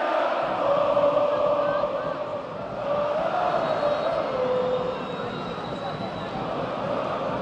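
A huge stadium crowd chants loudly in unison, echoing around the stands.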